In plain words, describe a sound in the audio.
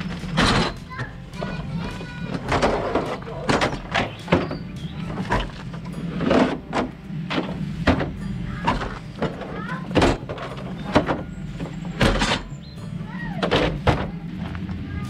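Plastic chairs clatter and knock as they are stacked.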